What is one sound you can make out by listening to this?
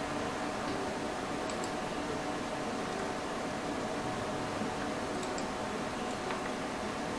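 A guitar plays a gentle melody.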